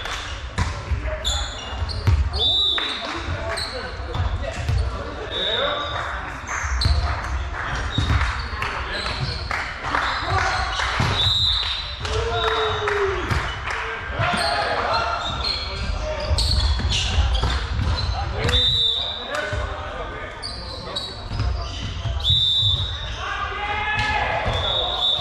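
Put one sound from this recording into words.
Men call out to each other across the court.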